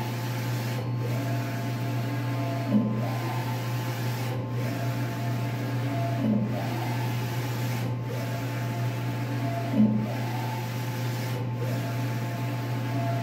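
A large printer hums steadily.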